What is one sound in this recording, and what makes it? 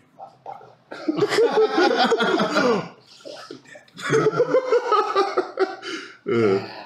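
A man laughs loudly over an online call.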